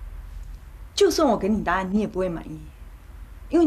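A woman speaks in an upset, pleading voice, close by.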